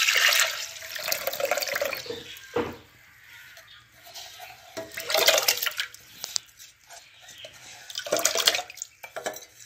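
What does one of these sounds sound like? Wet rice pours and splashes into a metal pot in bursts.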